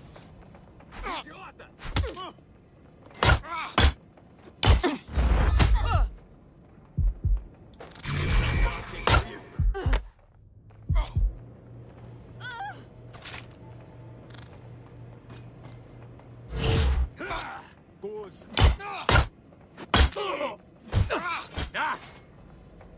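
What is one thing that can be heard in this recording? Heavy punches and blows land with dull thuds.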